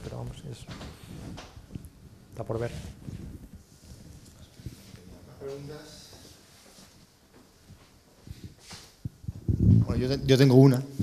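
A young man speaks calmly into a clip-on microphone, with pauses.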